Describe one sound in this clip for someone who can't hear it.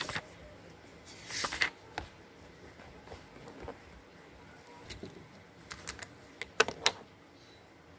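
Paper pages rustle and brush under a hand.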